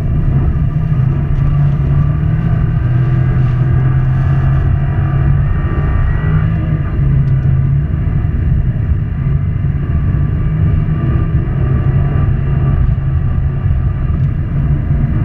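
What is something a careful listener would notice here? Studded tyres rumble and crunch over ice.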